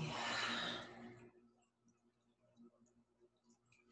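A woman gulps water from a glass.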